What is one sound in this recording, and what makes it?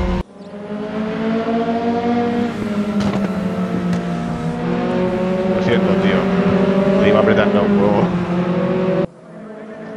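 Racing car engines roar at high revs as the cars speed past.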